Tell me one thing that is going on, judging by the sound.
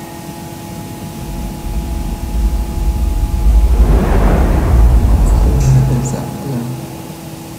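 A deep rushing roar swells as a tall pillar rises, then fades.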